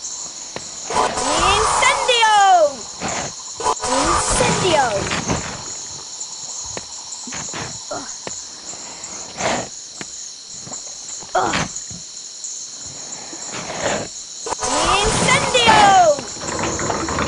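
A magic spell crackles and whooshes with rising and falling tones.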